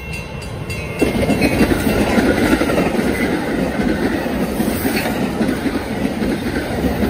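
A train roars by close up, wheels clattering on the rails.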